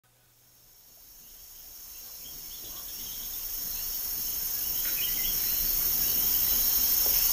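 A band plays lively music, slowly fading in.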